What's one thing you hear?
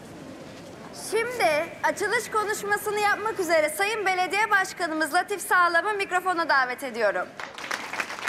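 A young woman announces through a microphone and loudspeaker, outdoors.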